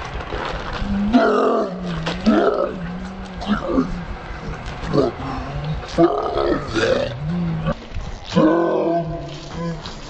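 A man groans and cries out in pain.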